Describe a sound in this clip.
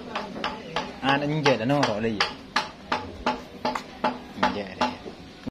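A sawmill machine knocks in a steady rhythm close by.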